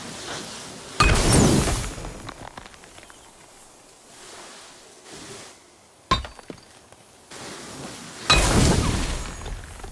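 A fiery magical blast bursts with a loud whoosh and roar.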